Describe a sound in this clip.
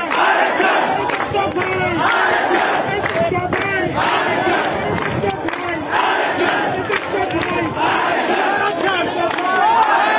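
A large crowd of men chants slogans loudly in unison outdoors.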